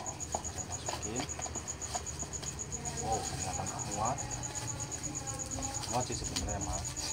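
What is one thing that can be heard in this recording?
Small knocks and taps come from a box being handled.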